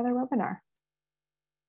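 A woman speaks briefly over an online call.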